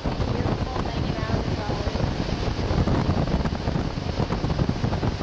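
A young girl speaks close by over the wind.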